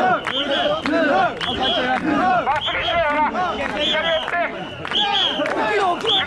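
A crowd of men chant loudly in rhythm close by.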